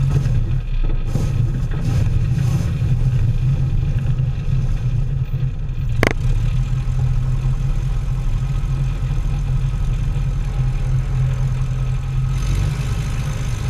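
Tyres rumble and crunch over gravel.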